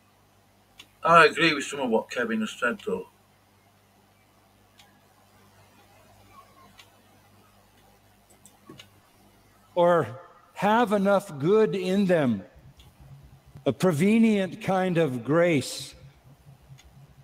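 A middle-aged man speaks calmly into a microphone, heard through an online stream.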